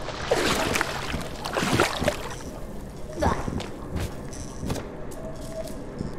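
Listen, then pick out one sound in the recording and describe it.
Water splashes as a small figure swims.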